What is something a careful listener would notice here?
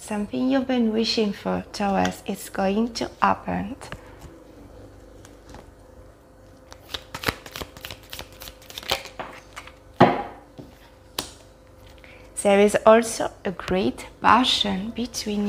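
A woman speaks calmly and close to a microphone.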